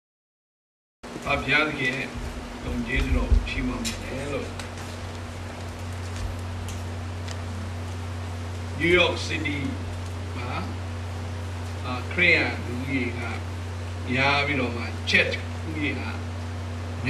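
A middle-aged man speaks into a microphone in short bursts, amplified in an echoing room.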